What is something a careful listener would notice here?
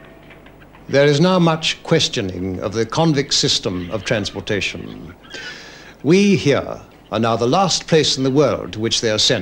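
A middle-aged man speaks loudly and with feeling close by.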